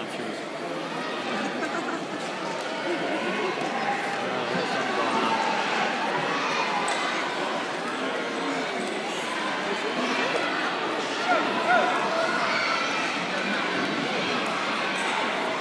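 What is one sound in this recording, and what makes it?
A crowd of children and adults chatters throughout a large echoing hall.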